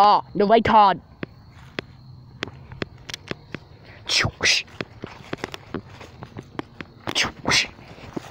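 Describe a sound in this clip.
Dry leaves crunch underfoot.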